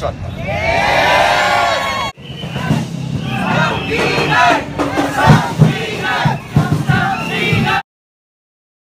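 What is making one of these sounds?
A crowd of protesters chants loudly outdoors.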